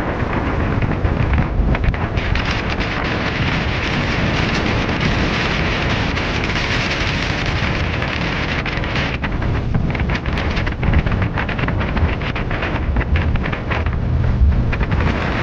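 Wind buffets loudly, outdoors on open water.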